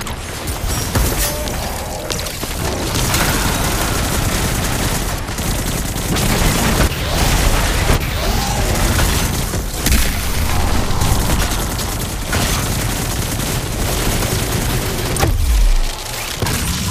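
Electric energy blasts crackle and boom.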